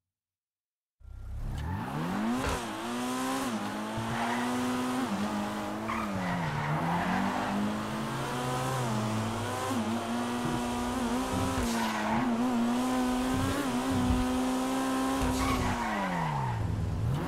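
A car engine revs and roars as it accelerates and shifts gears.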